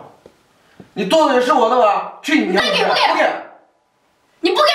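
A young woman shouts tearfully.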